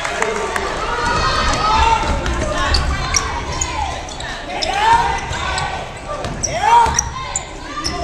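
Basketball sneakers squeak on a hardwood court in an echoing gym.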